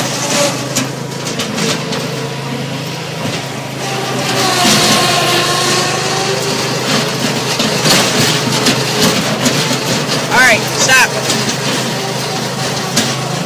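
A small lawn tractor engine hums steadily up close.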